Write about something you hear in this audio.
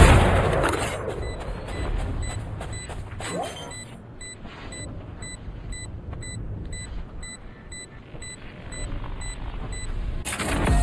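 An electronic device beeps quickly and steadily.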